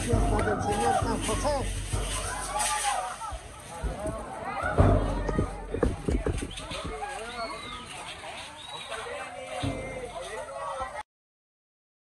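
Hand rattles shake and rustle.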